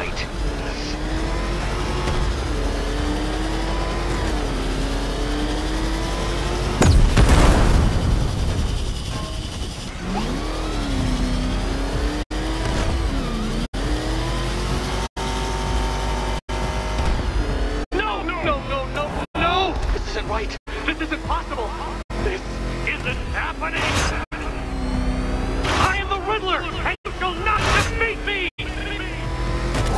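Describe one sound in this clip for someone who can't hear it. A powerful engine whines and revs steadily.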